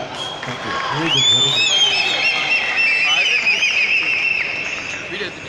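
Spectators whistle shrilly.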